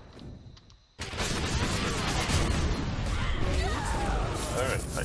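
Magic spells whoosh and crackle as fighters clash.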